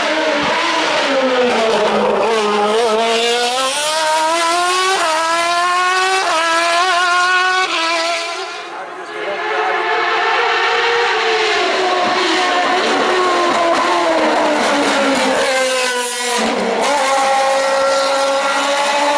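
A racing car engine screams and revs hard, shifting up through the gears.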